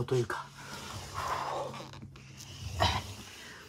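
A small wheel rolls across the floor.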